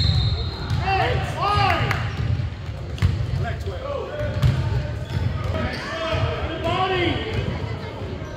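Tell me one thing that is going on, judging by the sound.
Sneakers squeak on a hardwood floor in an echoing gym.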